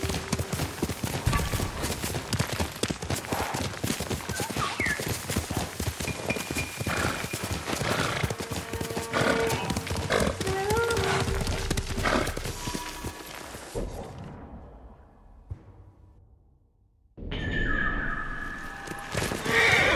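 A horse gallops with rapid thudding hoofbeats on soft ground.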